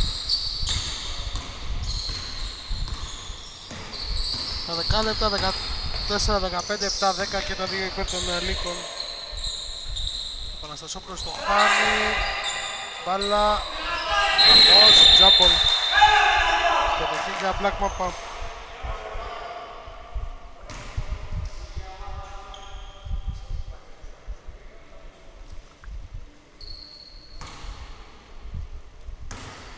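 A basketball thumps as it bounces on the floor.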